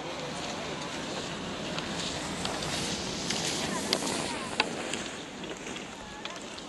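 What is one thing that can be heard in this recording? Skis swish and scrape over snow close by.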